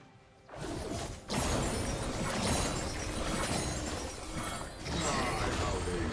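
Magic spells whoosh and crackle in a fast game battle.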